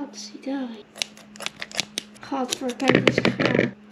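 Scissors snip sharply.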